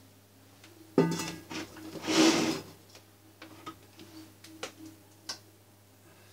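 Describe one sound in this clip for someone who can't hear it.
A plastic blender jar clunks and rattles as it is lifted off its base.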